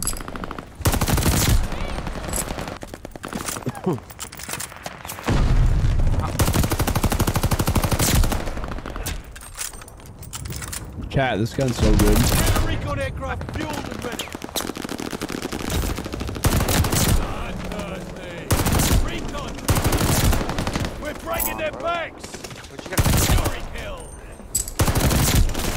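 Heavy automatic gunfire blasts in loud bursts.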